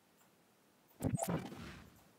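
A toy-like energy gun fires with a sharp zap.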